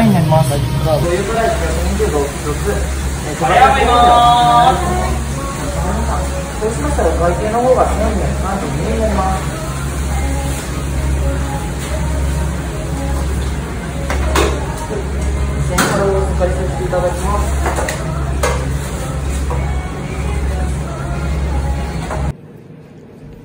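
Oil sizzles steadily in a deep fryer.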